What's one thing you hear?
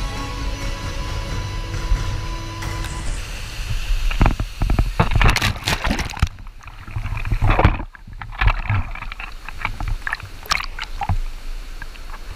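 A waterfall roars steadily into a pool.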